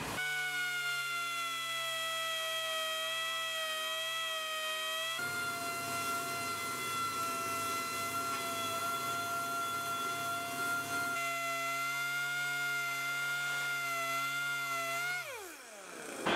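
A power sander whines steadily as it grinds metal.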